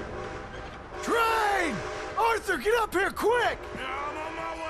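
A man shouts urgently from a distance.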